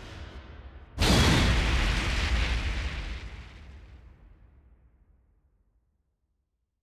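A loud deep whooshing boom sounds and slowly fades away.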